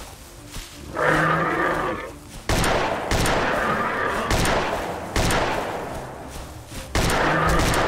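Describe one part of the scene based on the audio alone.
A small creature shrieks loudly.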